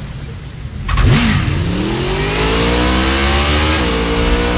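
A motorcycle engine starts and revs up loudly.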